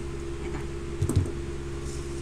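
Scissors clatter down onto a wooden table.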